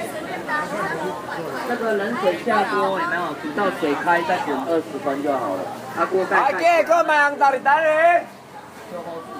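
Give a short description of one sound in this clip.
A toddler cries and wails loudly close by.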